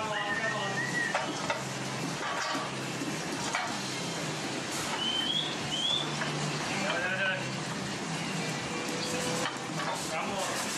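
Milking machines hum steadily in an echoing hall.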